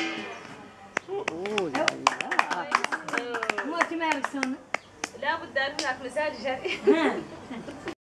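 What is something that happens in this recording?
A woman claps her hands in a steady rhythm.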